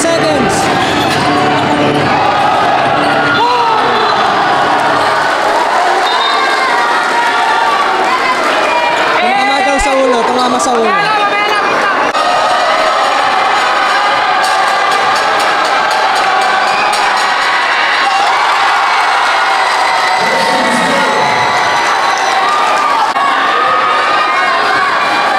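A large crowd cheers and shouts in an echoing hall.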